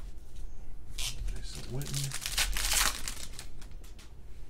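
A foil pack tears open with a crinkle.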